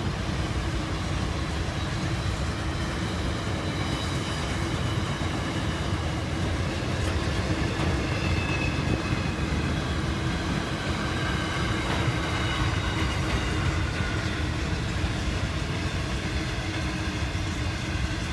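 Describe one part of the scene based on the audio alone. A long freight train rumbles past, its wagons clattering over the rails.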